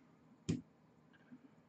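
A small plastic part clicks as fingers handle it.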